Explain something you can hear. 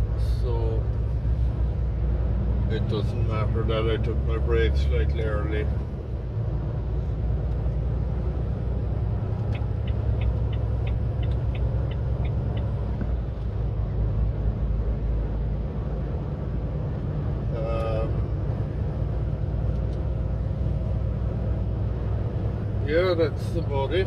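A vehicle's engine rumbles low and steady from inside the cab.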